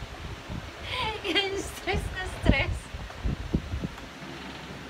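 A woman laughs loudly close by.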